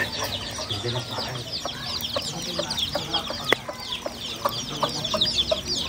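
Chicks peep rapidly nearby.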